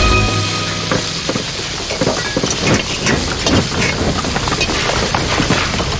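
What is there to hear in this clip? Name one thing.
Dishes and utensils clatter.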